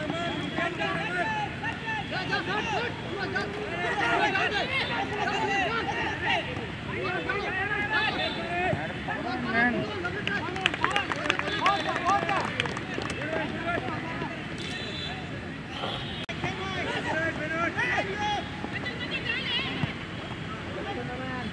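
Young men shout and call out to each other across an open field outdoors.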